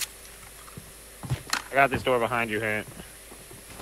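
A rifle clatters as it is swapped and handled.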